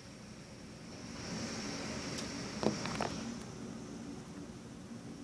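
Wind gusts through the trees outdoors.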